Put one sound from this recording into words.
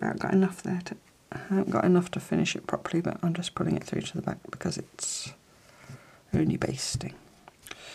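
Fabric strips rustle softly.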